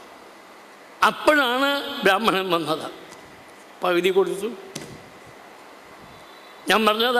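An elderly man speaks slowly into a microphone, heard through a loudspeaker in an echoing room.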